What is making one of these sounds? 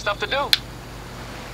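A man speaks briefly through a headset microphone.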